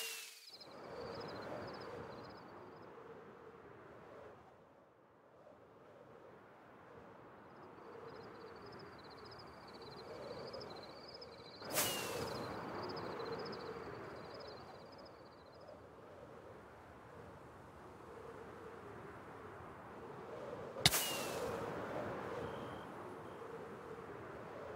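Wind rushes steadily past as if in fast flight.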